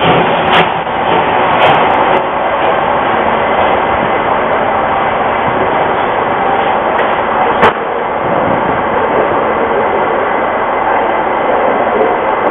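A steam locomotive chugs steadily as it pulls away.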